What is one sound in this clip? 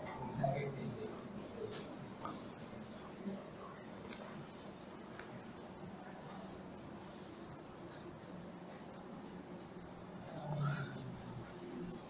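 A man rubs a duster across a chalkboard.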